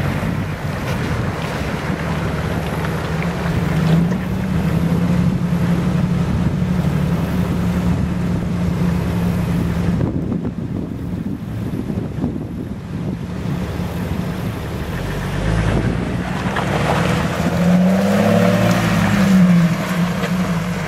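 A Jeep engine drones.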